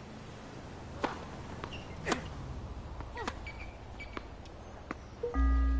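A tennis ball is struck with a racket, sharp pops going back and forth.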